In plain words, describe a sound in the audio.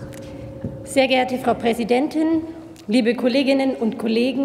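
A woman speaks calmly into a microphone, heard through loudspeakers in a large hall.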